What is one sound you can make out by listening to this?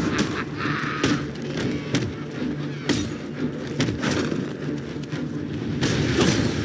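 Punches and kicks land with heavy thuds in a brawl.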